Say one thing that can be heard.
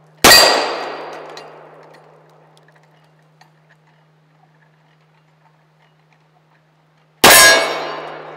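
A pistol fires two loud shots that echo through open woods.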